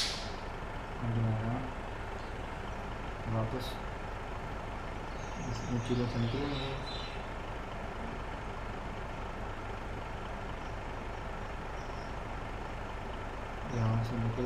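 A man talks briefly and quietly, close to a microphone.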